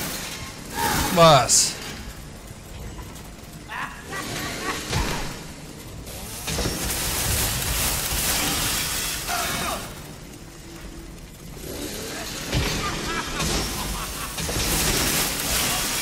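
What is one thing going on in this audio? A chainsaw engine revs and roars loudly.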